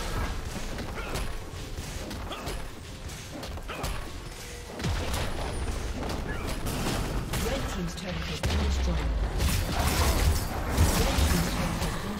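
Game spells and attacks clash with bursts and impacts.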